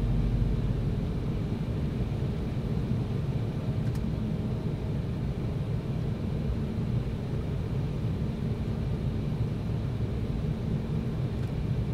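A jet airliner's engines roar steadily from inside the cabin.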